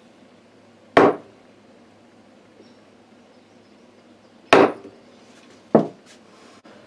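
A chisel cuts into wood with short, sharp scrapes.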